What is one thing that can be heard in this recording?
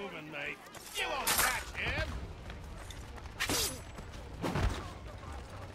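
Blows land hard in a scuffle.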